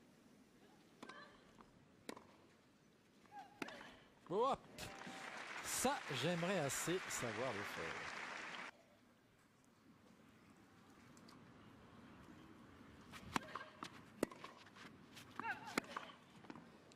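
A tennis ball is struck with sharp pops by rackets on a court.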